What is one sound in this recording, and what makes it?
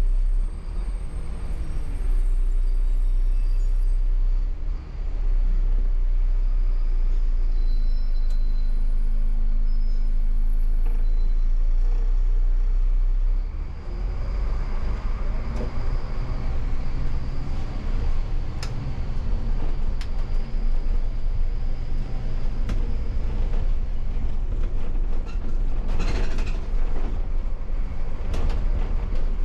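A bus engine hums and rumbles steadily from inside the cab.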